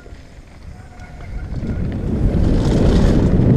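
Wind rushes past loudly as the bike speeds up.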